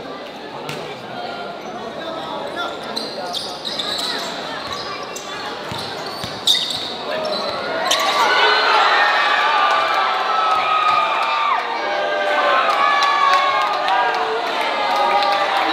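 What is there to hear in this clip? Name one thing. Sneakers squeak on a basketball court.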